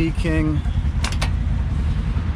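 A vehicle door unlatches with a click and swings open.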